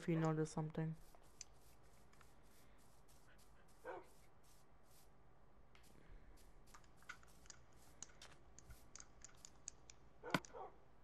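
Soft footsteps patter on grass in quick, even steps.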